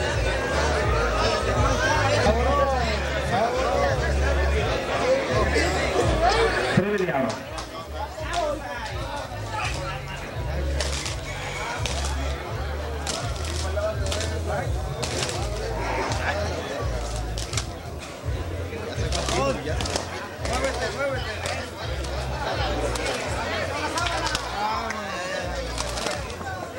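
A crowd of men shouts and chatters loudly nearby.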